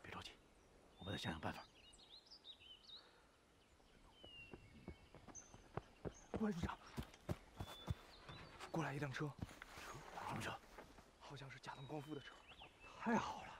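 Men talk calmly nearby, outdoors.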